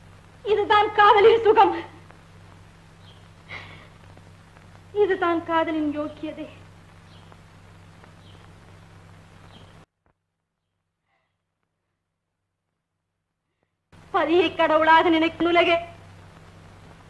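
A woman sings a slow, drawn-out melody with pauses between phrases.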